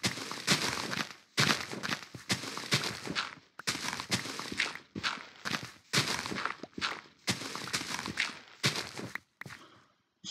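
Blocks of dirt crunch as they are dug out, over and over.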